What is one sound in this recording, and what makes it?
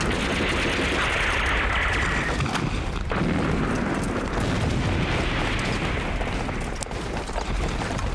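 Soldiers' boots run over the ground.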